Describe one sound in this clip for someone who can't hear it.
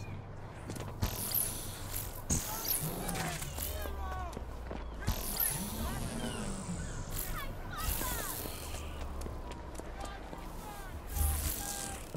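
A burst of energy whooshes and crackles.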